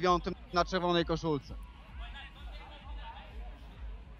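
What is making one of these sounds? A football is kicked hard on a grass pitch.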